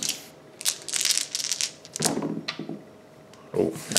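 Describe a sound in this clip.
Dice clatter onto hard gravelly ground.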